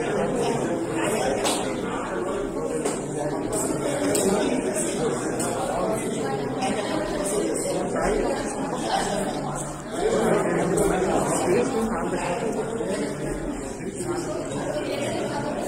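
Several men chat at once in a lively murmur, heard in an echoing hall.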